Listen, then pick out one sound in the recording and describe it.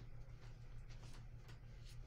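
A brush strokes softly across paper.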